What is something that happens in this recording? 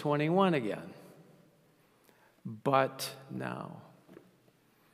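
An older man speaks with emphasis through a microphone, pausing between phrases.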